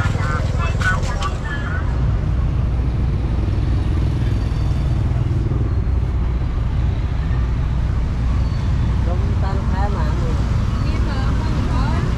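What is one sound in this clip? People chatter nearby.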